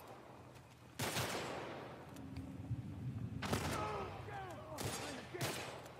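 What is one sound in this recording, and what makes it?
Loud gunshots ring out with echoes.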